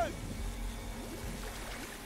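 A man shouts in strain.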